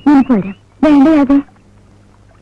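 A young woman speaks softly and with feeling, close by.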